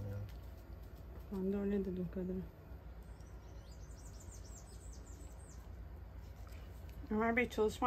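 Latex gloves rustle softly as hands rub cream into skin.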